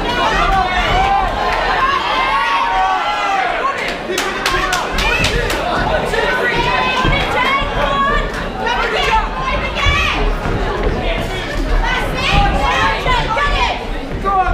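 Boxing gloves thud against bodies.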